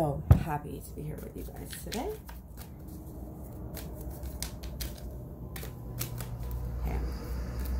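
Playing cards shuffle and click in a young woman's hands.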